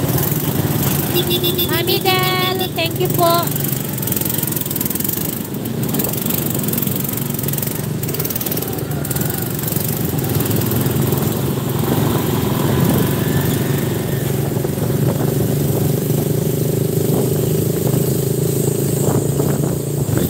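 A small motor rickshaw engine putters steadily close by.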